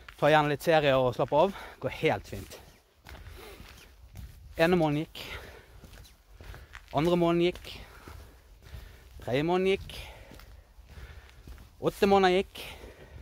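A middle-aged man talks close to the microphone, speaking in short bursts with animation.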